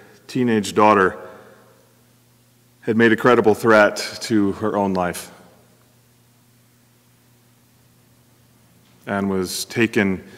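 A middle-aged man speaks calmly into a microphone in a room with a slight echo, pausing between phrases.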